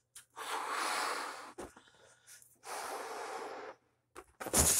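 A young woman blows hard into a balloon in close bursts.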